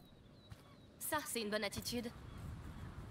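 A young woman answers briefly.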